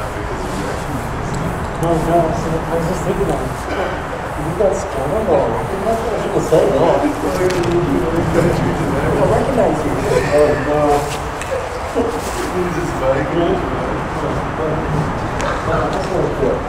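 A man talks outdoors, close by.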